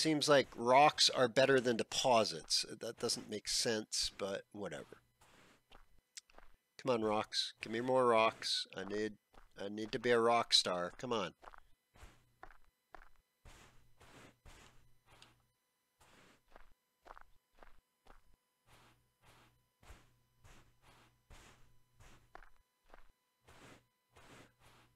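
Footsteps crunch on dry ground at a steady walking pace.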